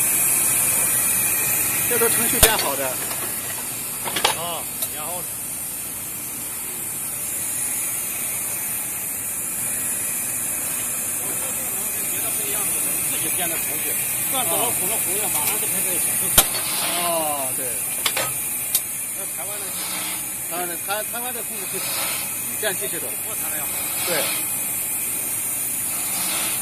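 A machine hums and hisses steadily in a large echoing hall.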